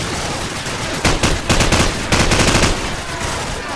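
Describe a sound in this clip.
Gunshots crack close by in quick bursts.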